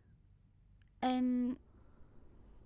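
A young woman answers softly, close by.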